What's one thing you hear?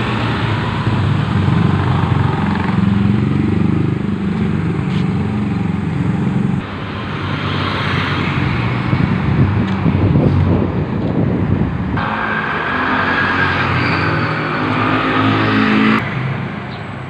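A motorcycle engine drones close by.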